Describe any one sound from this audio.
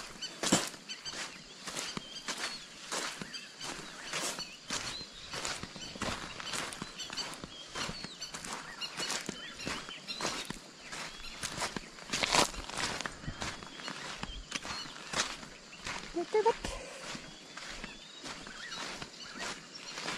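Footsteps crunch steadily on loose gravel outdoors.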